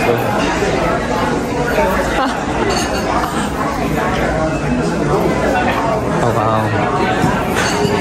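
Many men and women chatter at once in a busy room.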